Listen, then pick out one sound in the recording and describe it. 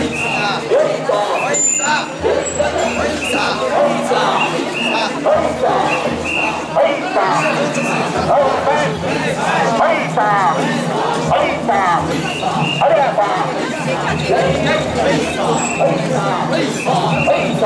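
Small bells jingle on a swaying portable shrine.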